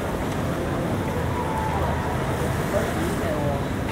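Men and women talk in low voices nearby.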